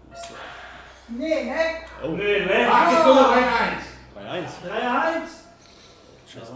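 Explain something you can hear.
A man groans and exclaims in dismay close to a microphone.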